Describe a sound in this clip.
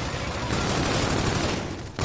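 A rifle fires in quick bursts.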